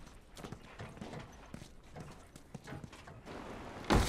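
Hands and feet knock on ladder rungs while climbing.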